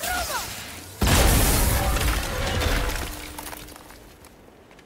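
A heavy stone door grinds open.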